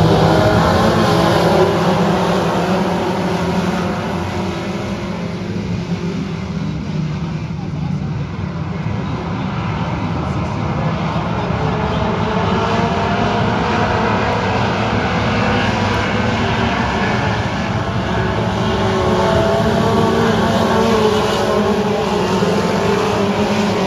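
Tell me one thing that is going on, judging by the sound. Race car engines roar loudly nearby.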